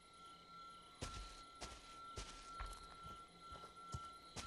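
Heavy footsteps thud on dirt ground.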